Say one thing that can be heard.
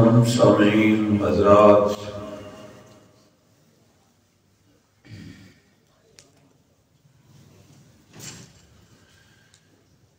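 A man speaks with feeling into a microphone, heard through a loudspeaker in an echoing room.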